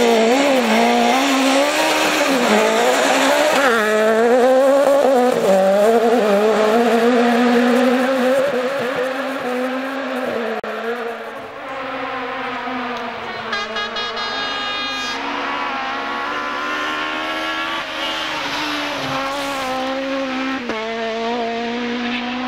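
A rally car engine roars and revs hard as the car speeds past.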